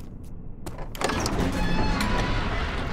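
A heavy door opens with a deep rumble.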